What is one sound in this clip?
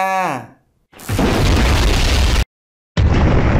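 A loud magical blast whooshes and roars.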